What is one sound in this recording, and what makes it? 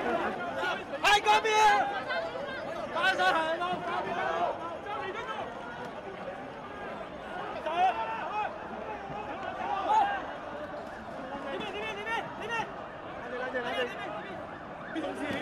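Men shout sharply close by.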